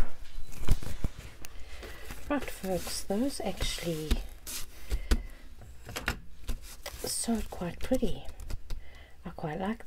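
Paper rustles and taps lightly against a table.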